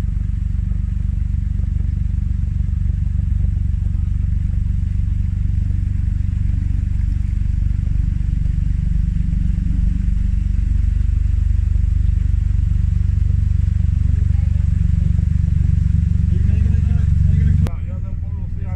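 A boat engine idles with a low, steady rumble nearby.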